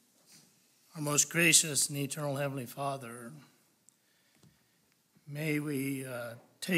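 An older man speaks through a microphone.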